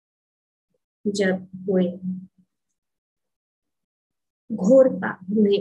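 An elderly woman speaks calmly, heard through an online call.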